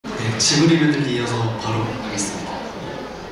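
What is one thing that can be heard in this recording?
A young man speaks into a microphone, heard through loudspeakers.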